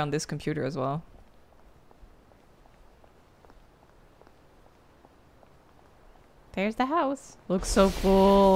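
A young woman speaks briefly into a close microphone.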